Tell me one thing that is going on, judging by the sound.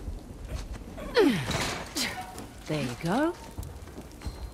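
A woman grunts with effort while climbing.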